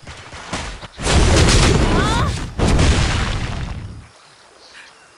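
A fiery magic blast roars and crackles.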